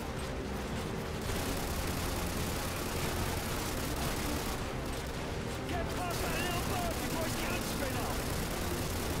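An outboard motor drives an inflatable boat at speed.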